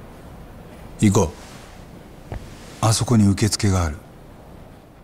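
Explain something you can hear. A young man speaks briefly to another person, close by.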